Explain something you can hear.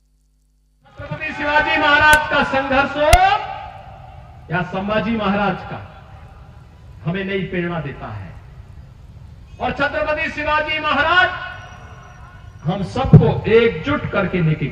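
A man speaks forcefully into a microphone over loudspeakers outdoors.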